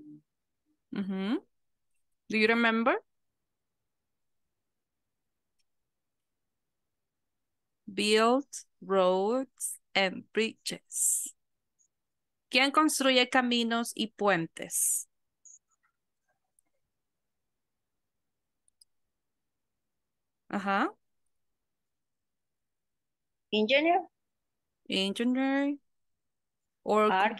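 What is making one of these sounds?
A woman speaks calmly in short phrases, heard through an online call.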